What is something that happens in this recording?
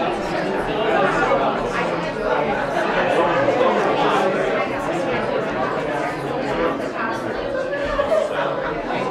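Several men and women chat in overlapping voices in a large room.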